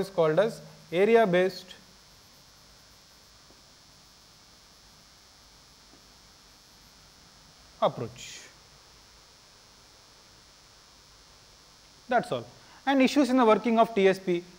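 A man speaks calmly through a microphone in short bursts with long pauses.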